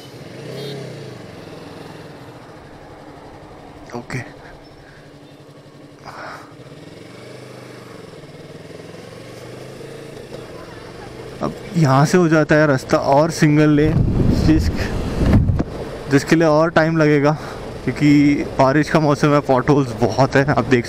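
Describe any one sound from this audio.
A motorcycle engine hums and changes pitch as it rides along.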